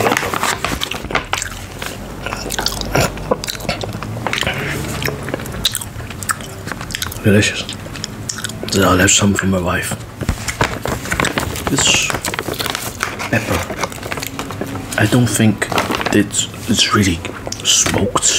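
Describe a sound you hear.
A plastic snack bag crinkles and rustles close to a microphone.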